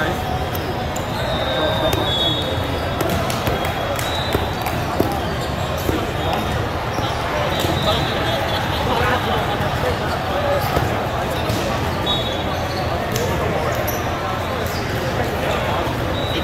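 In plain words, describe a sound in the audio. Volleyballs thump as they are hit and bounce.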